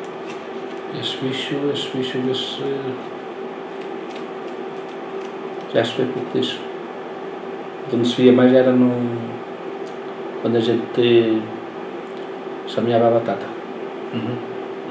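An elderly man speaks calmly into a nearby microphone, in short bursts.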